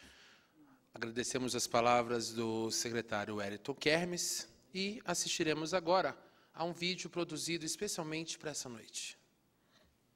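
A man speaks formally into a microphone.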